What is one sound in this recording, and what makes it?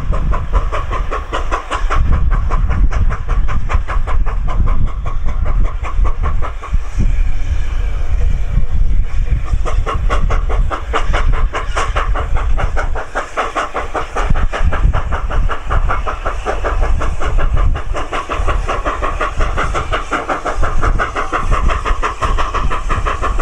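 A steam locomotive chuffs rapidly and steadily as it pulls a train.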